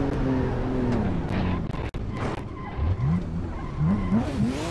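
A car engine drops to a lower rumble and revs rise and fall in short bursts.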